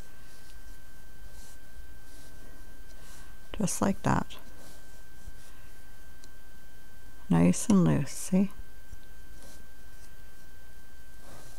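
A hook scrapes and clicks softly against the pegs of a knitting loom.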